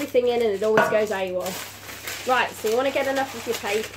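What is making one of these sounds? Baking paper rustles and crinkles.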